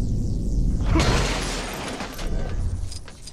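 Plastic bricks clatter and scatter as they break apart.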